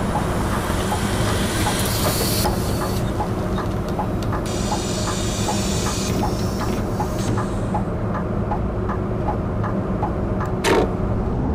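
A turn signal ticks rapidly and evenly.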